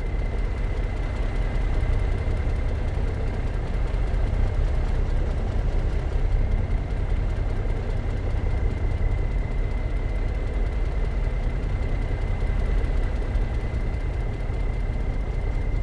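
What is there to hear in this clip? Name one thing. A heavy truck engine idles and rumbles steadily.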